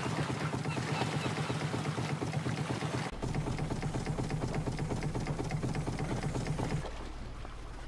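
A small boat engine chugs steadily.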